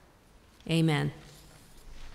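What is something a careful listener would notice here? A woman speaks briefly into a microphone.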